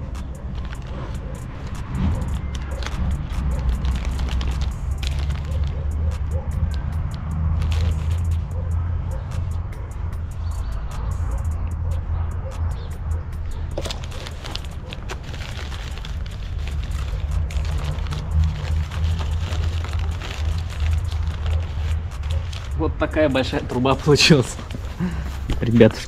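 Paper crinkles and rustles close by as it is rolled up.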